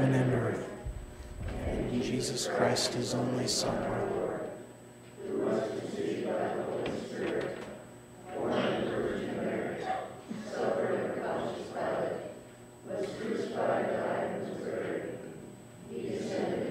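A congregation speaks together in unison in an echoing hall.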